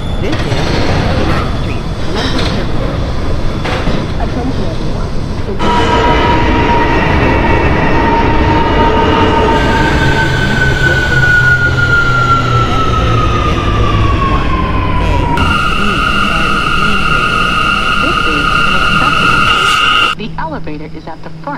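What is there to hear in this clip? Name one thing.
A subway train rumbles along the tracks.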